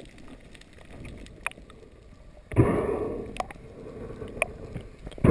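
Water rushes and gurgles underwater.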